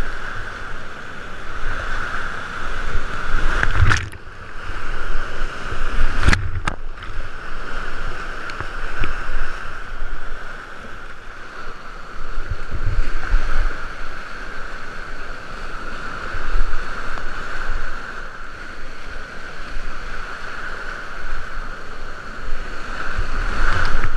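Whitewater rapids rush and roar loudly close by.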